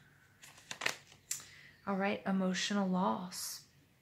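A card is laid down with a soft tap on a wooden table.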